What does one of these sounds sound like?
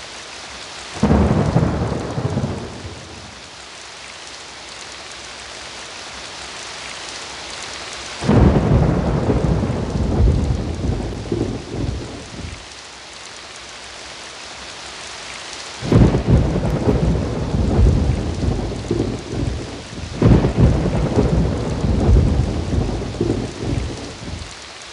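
A roller coaster rumbles and rattles along its track in loud bursts.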